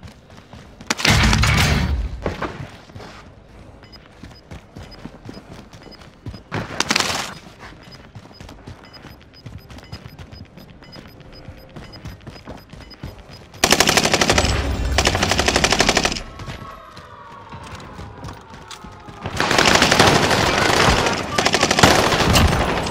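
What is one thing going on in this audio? Rapid gunfire bursts out loudly in short spells.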